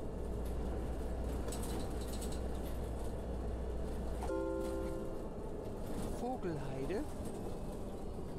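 Tyres rumble over cobblestones.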